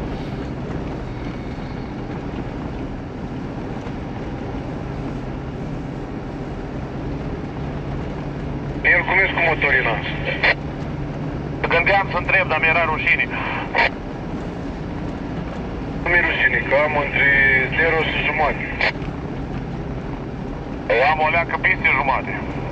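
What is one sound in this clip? Tyres roll over packed snow.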